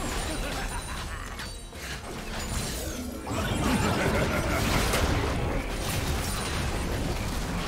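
Magic spells crackle and burst in a busy fight.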